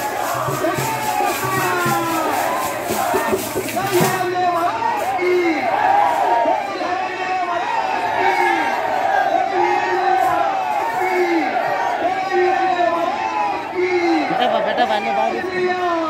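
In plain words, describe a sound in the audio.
A large crowd of men murmurs and chatters outdoors.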